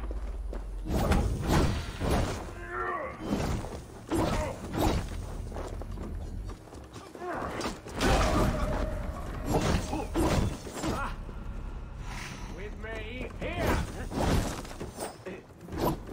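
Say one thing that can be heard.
Flames whoosh and crackle.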